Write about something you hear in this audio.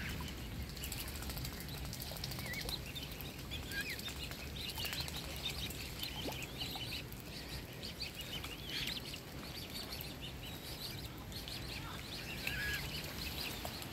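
A swan dabbles and splashes softly in shallow water.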